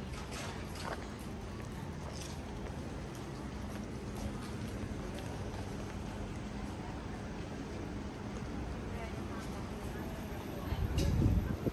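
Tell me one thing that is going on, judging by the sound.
Outdoors, a quiet street hums with faint distant bustle.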